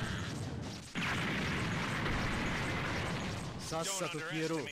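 A loud explosion roars and rumbles.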